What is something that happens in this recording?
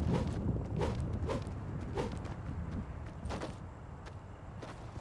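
Footsteps thud on hard ground.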